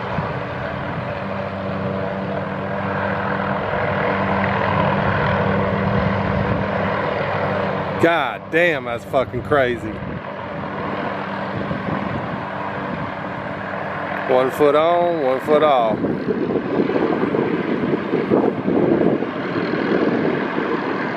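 A light turbine helicopter hovers close by, its rotor thudding and its engine whining.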